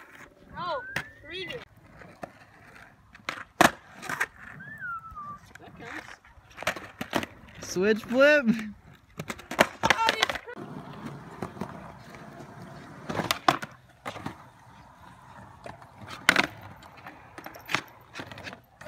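A skateboard clacks and slaps against concrete and a ledge.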